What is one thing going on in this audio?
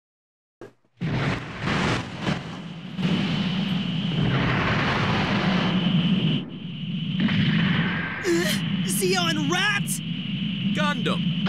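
Rocket thrusters roar steadily.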